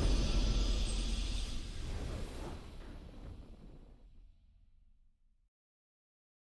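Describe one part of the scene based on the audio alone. A triumphant game fanfare rings out and slowly fades away.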